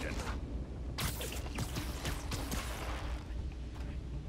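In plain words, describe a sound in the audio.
A web shoots out with a sharp swishing whoosh.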